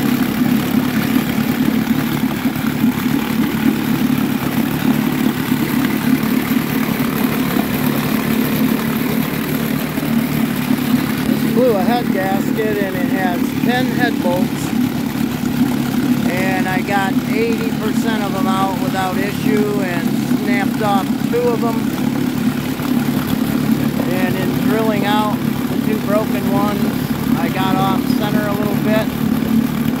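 Water churns and bubbles in a tub.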